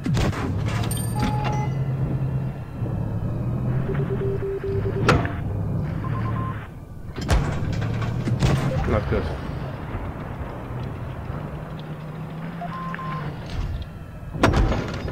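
Tank cannons fire with loud booming blasts.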